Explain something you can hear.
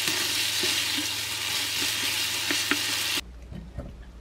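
Pasta sizzles loudly in a hot pan.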